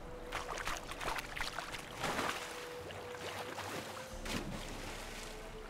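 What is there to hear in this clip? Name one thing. Water splashes as a horse wades into a river.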